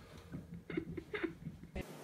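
A cat's paws patter on a wooden floor.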